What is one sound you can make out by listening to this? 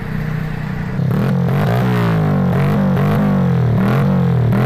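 A motorcycle engine idles loudly close by, revving up and down.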